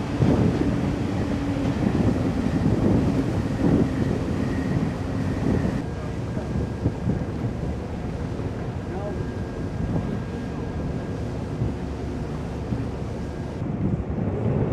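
Water jets gush and splash into the sea.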